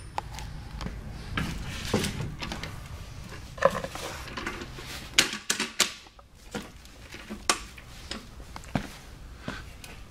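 A wooden chair knocks and creaks as it is moved.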